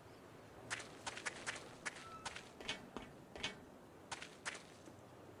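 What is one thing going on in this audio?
Footsteps crunch quickly on gravel.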